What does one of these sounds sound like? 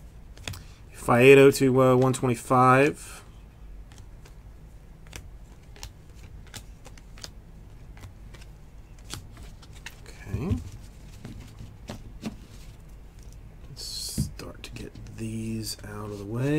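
Trading cards flick and rustle softly as they are handled.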